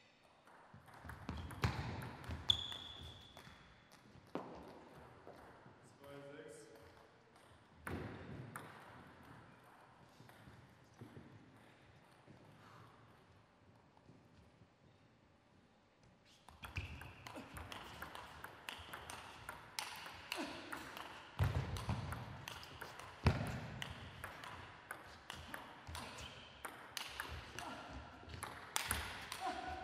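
A table tennis ball clicks back and forth off paddles and a table in a fast rally.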